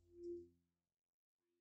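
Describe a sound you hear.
An acoustic guitar string rings briefly.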